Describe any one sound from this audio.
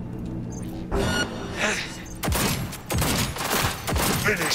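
A pistol fires several sharp shots in quick succession.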